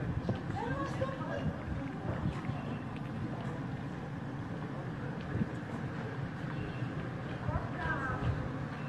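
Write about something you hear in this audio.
A group of adult men and women chat faintly at a distance outdoors.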